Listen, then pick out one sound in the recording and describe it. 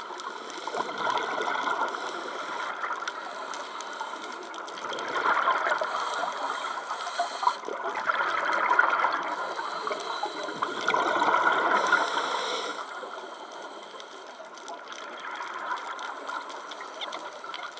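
A diver breathes out through a regulator, releasing rushing, bubbling bursts of air underwater.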